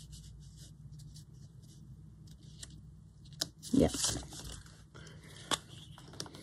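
Paper rustles and crinkles up close.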